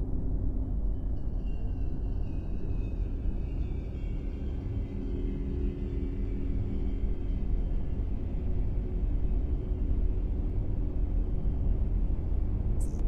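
A spaceship's warp drive swells with a rising, sweeping whoosh.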